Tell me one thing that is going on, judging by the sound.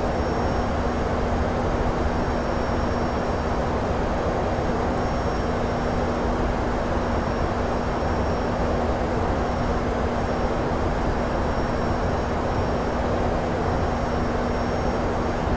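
Jet engines drone steadily from inside an airliner's cockpit.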